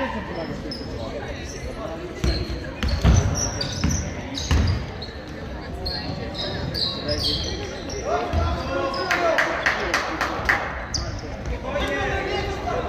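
Young players shout and call out to each other in an echoing gym.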